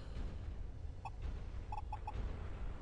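Short electronic menu beeps chirp several times.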